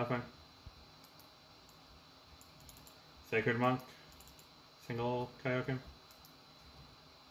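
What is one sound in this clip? Keyboard keys click softly and rapidly.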